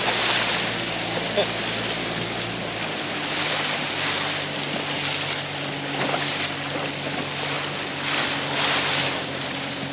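Small waves slap and splash against a boat's hull.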